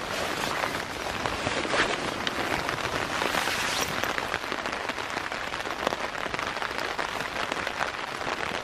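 A rain jacket rustles close by.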